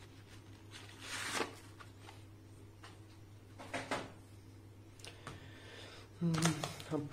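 Plastic packaging crinkles and rustles under a hand.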